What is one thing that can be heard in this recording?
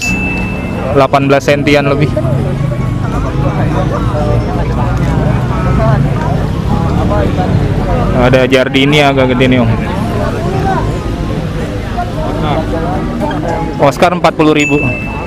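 Many men and women talk at once in a busy, lively crowd outdoors.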